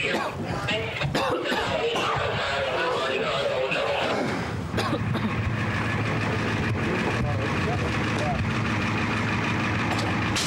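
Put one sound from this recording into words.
Several men talk over one another in a crowd.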